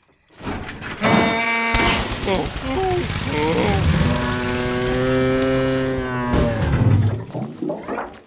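A tractor engine sputters and groans as the tractor tips over.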